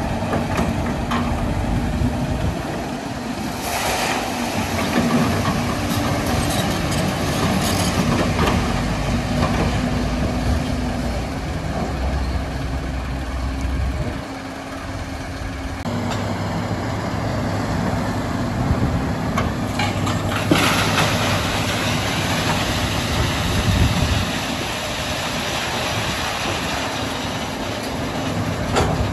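A diesel excavator engine rumbles steadily nearby.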